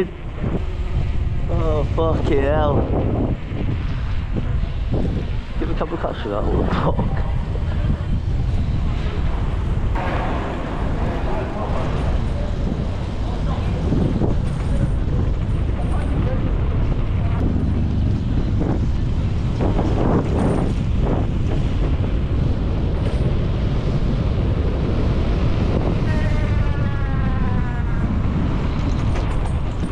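Wind rumbles loudly across the microphone outdoors.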